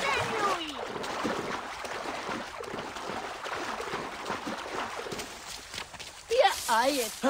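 Water splashes and sloshes as a swimmer paddles through it.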